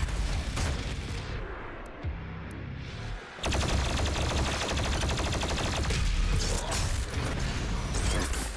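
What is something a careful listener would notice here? A heavy gun fires rapid bursts of shots.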